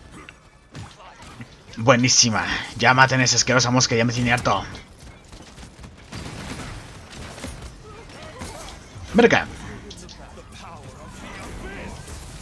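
A heavy gun fires bursts of shots.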